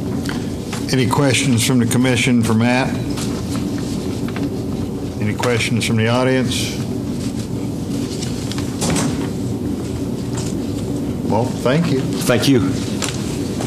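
A man speaks steadily through a microphone and loudspeaker in a room.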